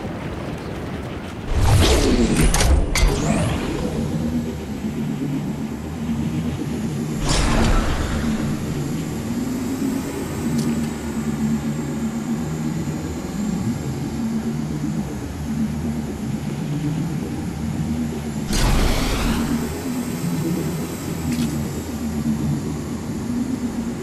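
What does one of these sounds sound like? Wind rushes steadily past a glider in flight.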